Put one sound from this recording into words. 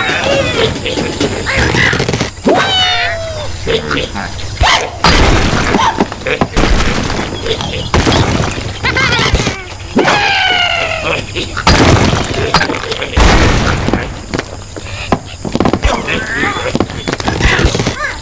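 Cartoon birds are flung from a slingshot with a stretching twang.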